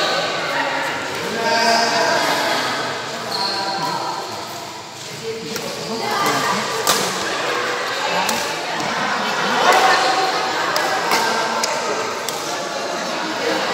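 A badminton racket strikes a shuttlecock with sharp pops.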